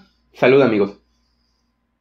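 A young man says a short phrase close by, with animation.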